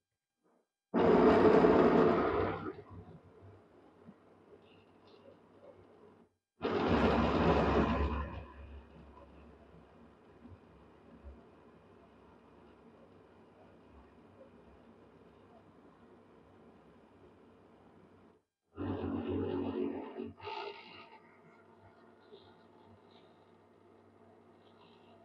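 A blender whirs loudly in short bursts, then runs on more quietly.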